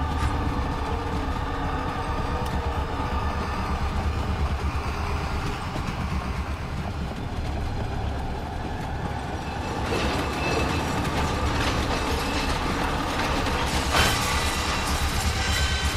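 A mine cart rumbles and rattles along metal rails.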